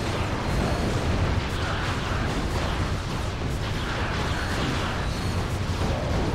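Gunfire rattles and zaps.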